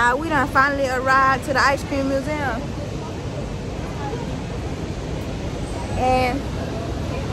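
Street noise of a busy city sidewalk murmurs in the background.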